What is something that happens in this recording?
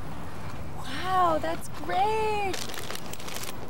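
A woman exclaims loudly.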